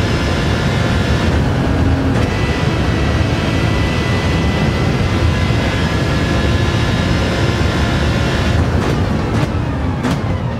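A racing car engine roars loudly at high revs.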